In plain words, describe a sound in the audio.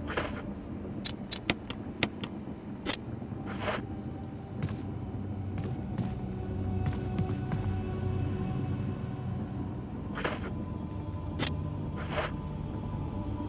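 Short electronic clicks sound as a menu is moved through.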